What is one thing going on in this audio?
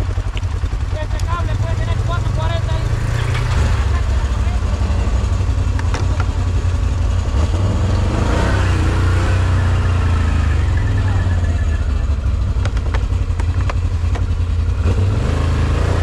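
An ATV engine idles and rumbles close by.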